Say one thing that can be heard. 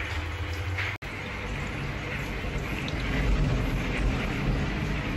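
Water sprays steadily from a shower head.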